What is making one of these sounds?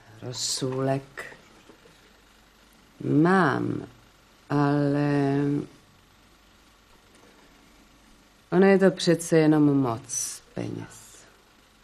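A middle-aged woman speaks with animation, her voice rising and falling.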